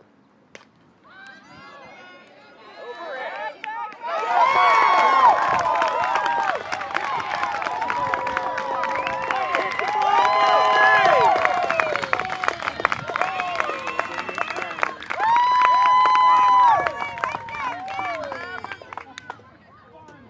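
A group of girls cheer and shout excitedly nearby.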